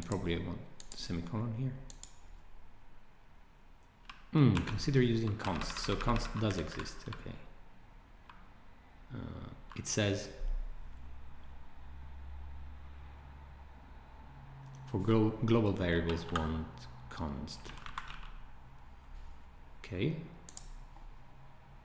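A man talks calmly and thoughtfully, close to a microphone.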